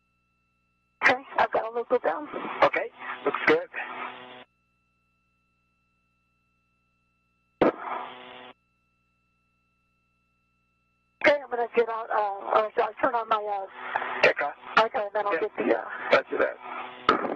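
A man speaks calmly over a crackly radio link.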